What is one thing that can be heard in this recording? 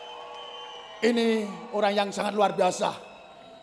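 A man speaks through a loudspeaker with animation.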